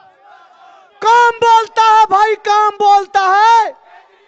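Another man shouts slogans loudly through a loudspeaker.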